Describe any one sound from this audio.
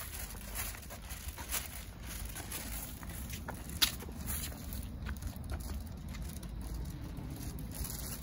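A plastic bag rustles with each step.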